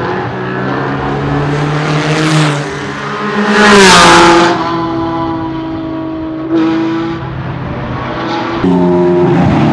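Racing car engines roar past at high speed.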